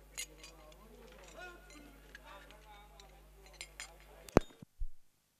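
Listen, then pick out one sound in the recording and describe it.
Young boys talk with animation nearby.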